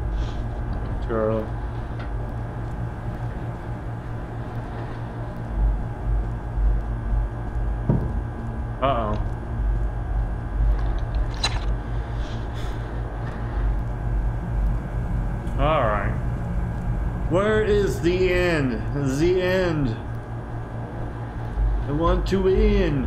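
A young man talks into a close microphone, in short bursts with pauses.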